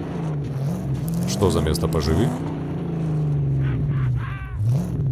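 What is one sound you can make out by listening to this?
Tyres crunch over rough gravel.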